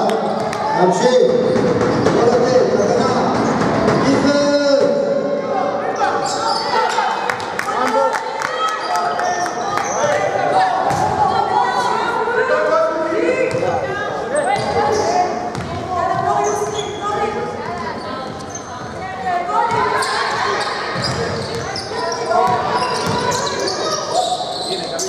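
Young women shout to each other across the court.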